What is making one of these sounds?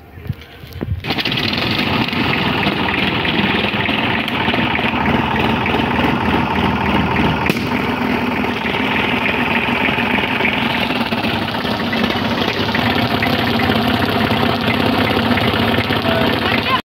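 A tractor engine starts and runs with a loud, steady chugging roar.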